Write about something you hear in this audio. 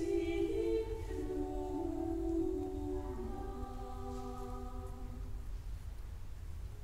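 A choir of young voices sings slowly in a large echoing hall, the last chord fading away.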